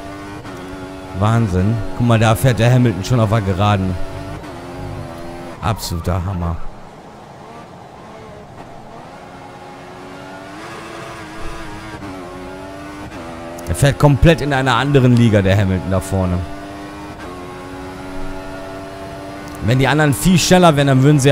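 A racing car engine whines loudly, rising in pitch and dropping as it shifts gears.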